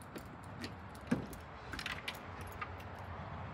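A van door swings open with a clunk.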